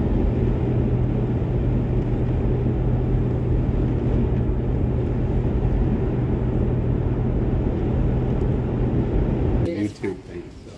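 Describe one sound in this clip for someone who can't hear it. A car drives along a road with a steady low rumble.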